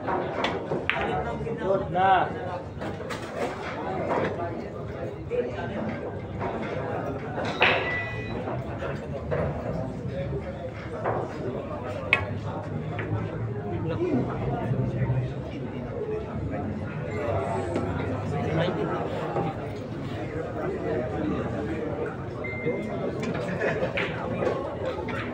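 A crowd murmurs and chatters in a busy hall.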